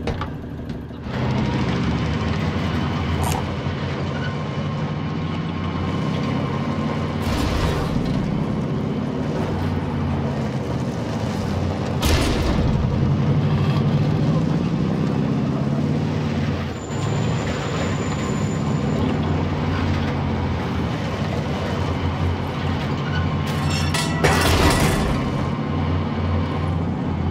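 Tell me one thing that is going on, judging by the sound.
A heavy truck engine rumbles and revs as the truck drives along.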